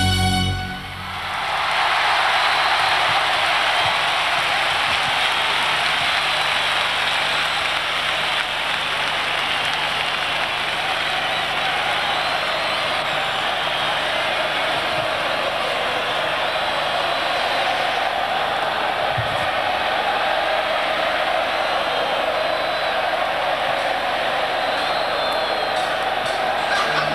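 A huge crowd cheers and screams loudly.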